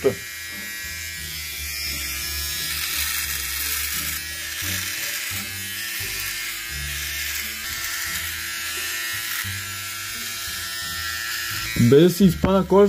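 An electric trimmer buzzes steadily against skin.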